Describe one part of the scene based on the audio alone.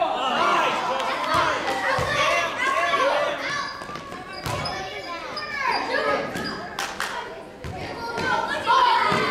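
A crowd of children shout and cheer in an echoing gym.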